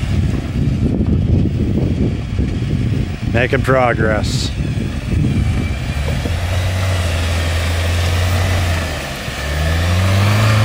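Tyres crunch over rough ground.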